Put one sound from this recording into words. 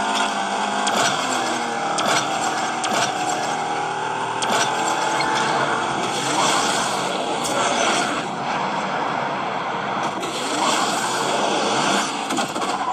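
Whooshing boost effects burst from a game.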